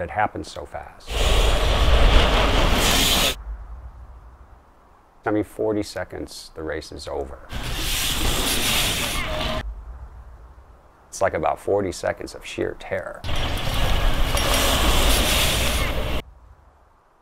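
Bicycle tyres whoosh over packed dirt.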